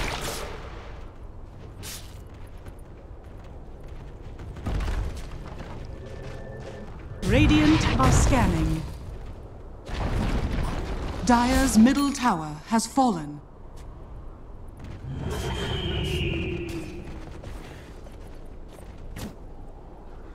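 Blows clash and thud in a game fight.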